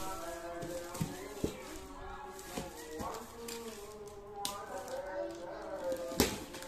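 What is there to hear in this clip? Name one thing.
Hands tap and thump on a cardboard box.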